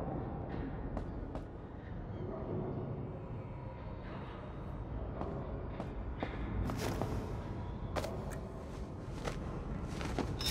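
Light footsteps tap on a metal floor.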